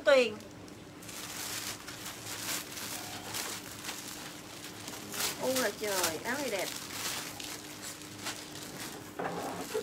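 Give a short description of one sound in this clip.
Plastic wrapping rustles and crinkles as garments are handled.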